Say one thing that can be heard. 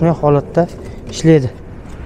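Plastic wrapping crinkles under a hand.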